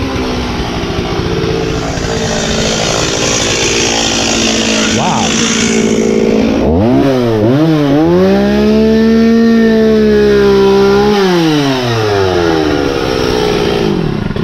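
A chainsaw engine roars close by, revving up and down.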